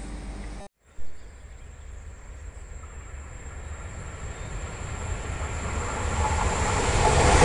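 A high-speed electric train approaches from a distance, growing louder.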